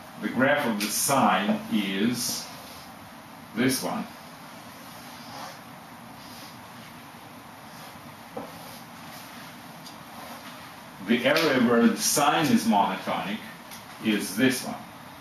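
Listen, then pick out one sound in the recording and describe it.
A middle-aged man speaks calmly nearby, explaining.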